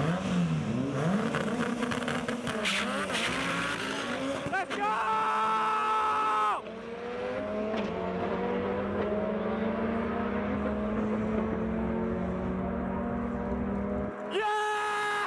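A race car engine roars and fades as the car speeds away.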